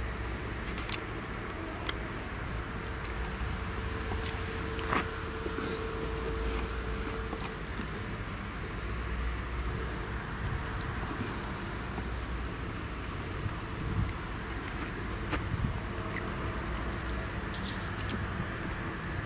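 A harvester engine hums steadily in the distance.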